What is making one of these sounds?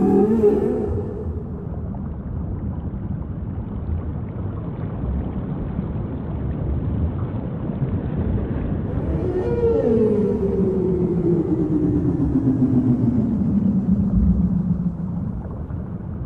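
Killer whales call underwater with long, falling squeals.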